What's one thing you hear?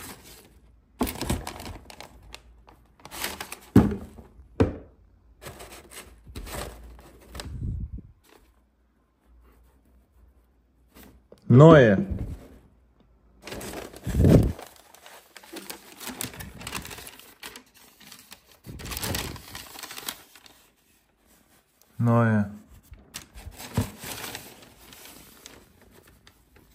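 A shoe knocks and scrapes against a cardboard box.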